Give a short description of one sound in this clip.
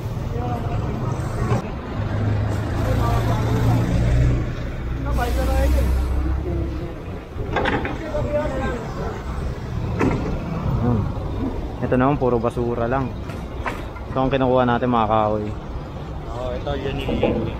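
Men talk nearby outdoors.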